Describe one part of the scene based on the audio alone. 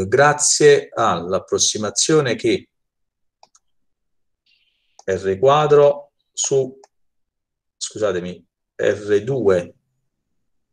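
A man speaks calmly into a microphone, explaining in pauses.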